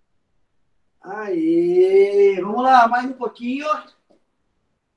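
A man calls out loudly nearby in long, drawn-out words.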